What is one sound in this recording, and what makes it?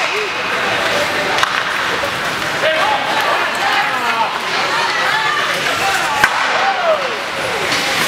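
Ice skates scrape across ice in an echoing arena.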